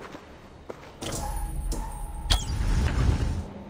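A magical energy beam hums and crackles loudly.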